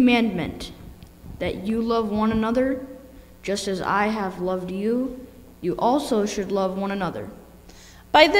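A boy reads aloud into a microphone.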